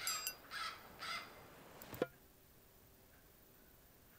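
A short click sounds as a game menu opens.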